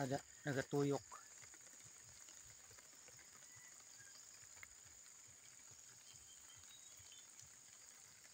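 A sprinkler sprays water with a soft hiss.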